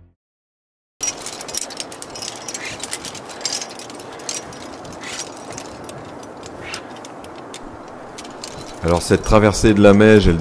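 Metal climbing gear jingles and clinks as a climber moves.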